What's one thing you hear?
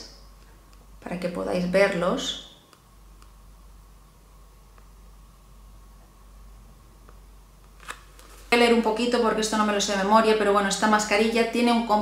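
A young woman talks calmly and close to the microphone.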